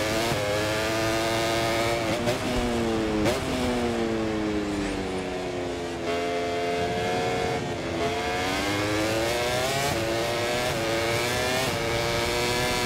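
A racing motorcycle engine screams, its pitch rising and falling as it shifts gears and brakes into bends.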